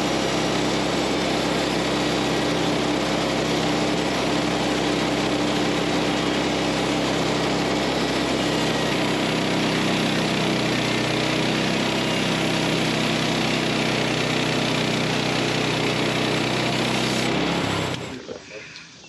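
A band sawmill roars steadily as the blade cuts through a log.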